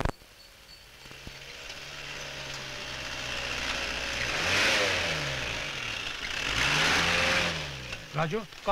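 A jeep engine rumbles as it drives past.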